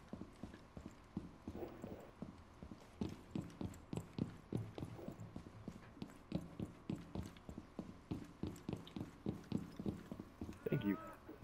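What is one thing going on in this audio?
Footsteps thud steadily across a hard floor.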